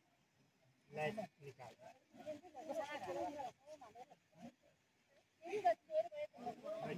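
Several men and women talk nearby, outdoors, with animation.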